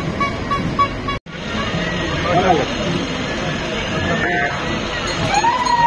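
A heavy truck engine rumbles as the truck drives past.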